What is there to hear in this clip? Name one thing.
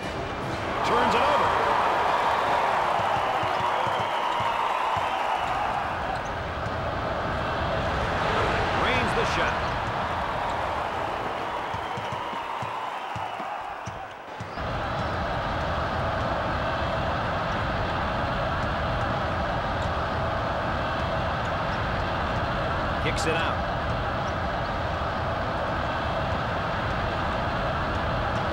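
A crowd cheers and murmurs in a large echoing arena.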